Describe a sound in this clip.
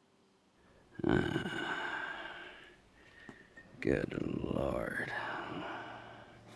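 A man groans and exclaims in dismay.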